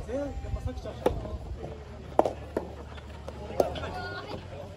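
A tennis ball is struck sharply with a racket, several times.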